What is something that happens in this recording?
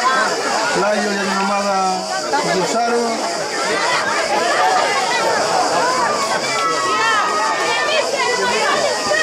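A crowd of spectators chatters and calls out nearby, outdoors.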